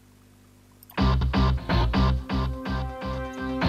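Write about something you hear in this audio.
A chiptune-style electronic tune with a steady beat starts playing.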